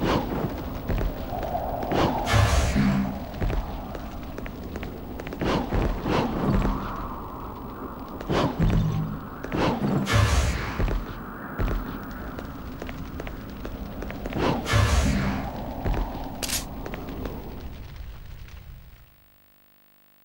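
Footsteps echo on stone.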